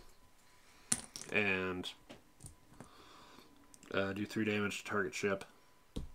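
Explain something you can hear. Small plastic tokens clink as a hand moves them.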